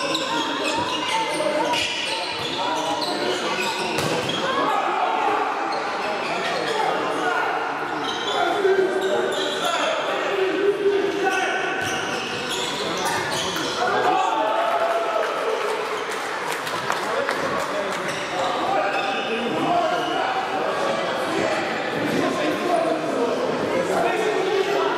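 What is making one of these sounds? Sneakers squeak and thud on a sports hall floor, echoing in a large hall.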